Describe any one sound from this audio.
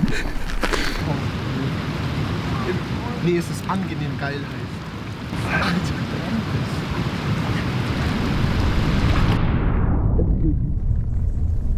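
Wind blows outdoors.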